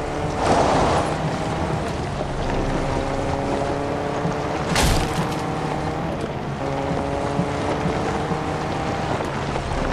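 Tyres rumble over grass and dirt.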